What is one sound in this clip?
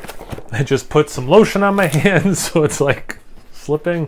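A knife slits tape on a cardboard box.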